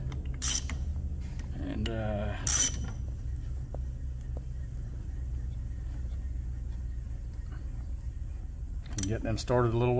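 A ratchet wrench clicks as it turns.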